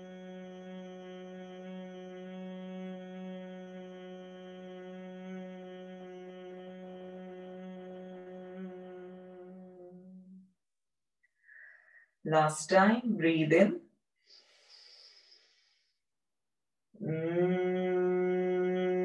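A woman chants a long, steady humming note close by.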